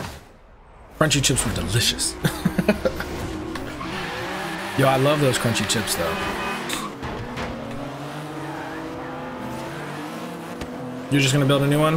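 Car engines rev and roar as a race starts.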